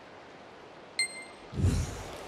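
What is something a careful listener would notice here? A short bright chime rings once.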